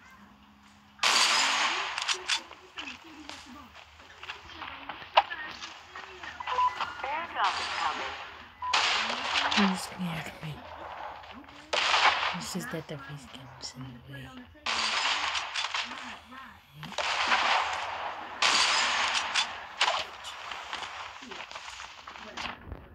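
Gunshots bang loudly in a video game.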